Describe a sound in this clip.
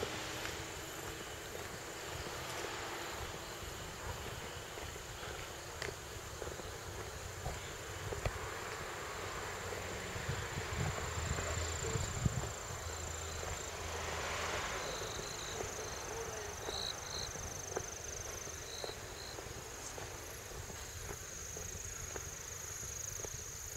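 Wind blows outdoors and rumbles against the microphone.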